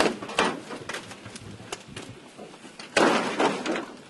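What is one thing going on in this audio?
Boots crunch over broken bricks and rubble.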